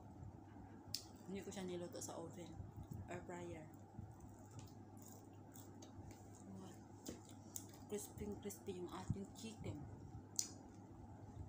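A young woman talks calmly close to a microphone.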